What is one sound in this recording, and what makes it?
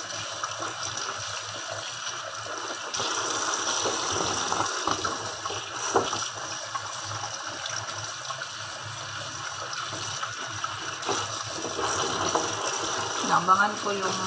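Tap water runs steadily into a metal sink.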